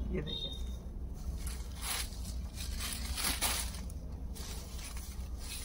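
Fabric rustles as a cloth is moved and dropped.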